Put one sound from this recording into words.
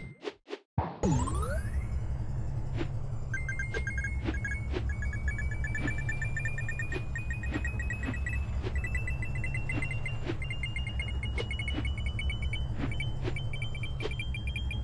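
Upbeat electronic music plays with a steady thumping beat.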